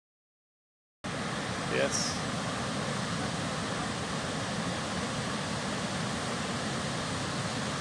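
A large waterfall roars steadily nearby.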